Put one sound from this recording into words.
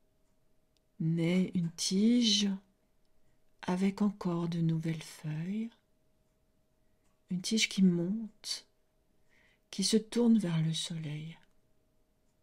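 A middle-aged woman speaks calmly and slowly into a close microphone, with long pauses.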